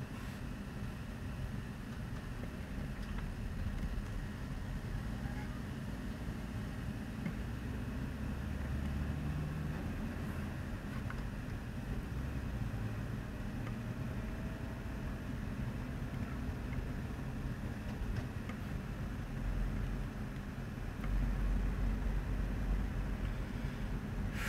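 A car engine rumbles steadily close by.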